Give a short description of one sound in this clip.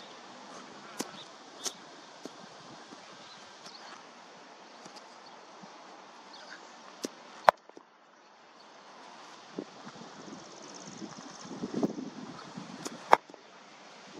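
A cricket bat strikes a cricket ball outdoors.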